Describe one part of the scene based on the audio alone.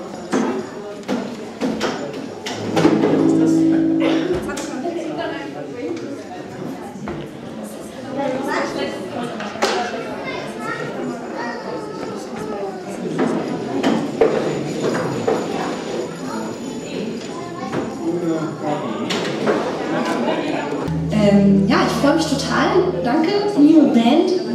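An electric bass guitar plays.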